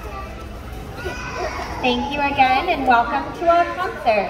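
A choir of young children sings together nearby.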